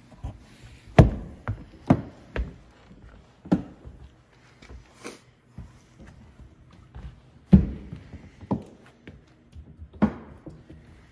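A hand knocks and thumps on a hollow panel.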